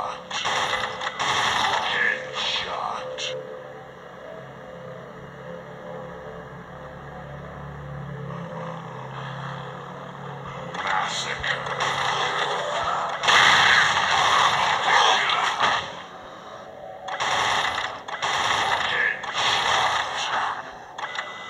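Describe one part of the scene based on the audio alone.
A rapid-fire machine gun rattles in loud bursts.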